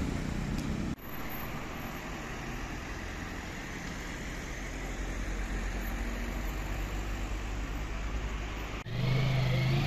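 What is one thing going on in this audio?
Traffic hums steadily along a road.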